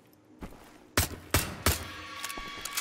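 A pistol fires several sharp shots in quick succession, echoing in a large stone room.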